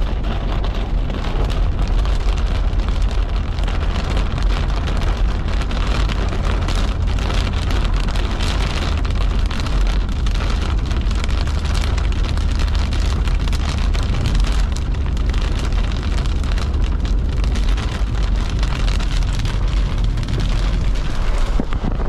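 Windshield wipers swish back and forth.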